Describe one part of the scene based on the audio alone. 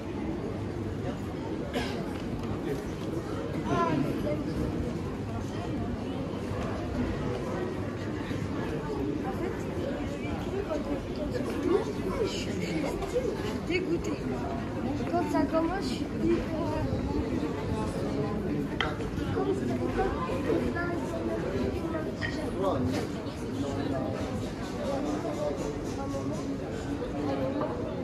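A crowd of people chatters steadily outdoors.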